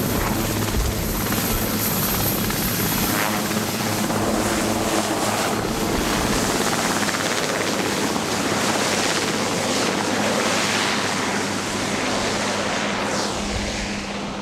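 A helicopter's rotor roars and whirs loudly as the helicopter lifts off and climbs away.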